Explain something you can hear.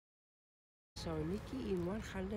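An elderly woman speaks calmly outdoors.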